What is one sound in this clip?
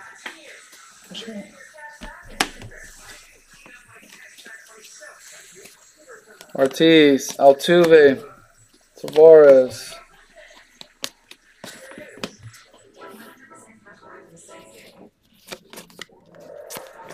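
Trading cards rustle and click as they are shuffled by hand.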